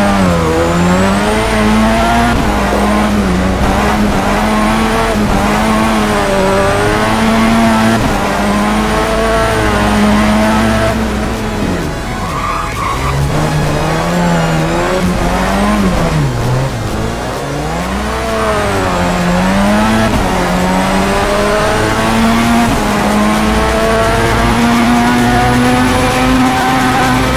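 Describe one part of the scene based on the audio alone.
A car engine revs high, rising and falling as gears shift.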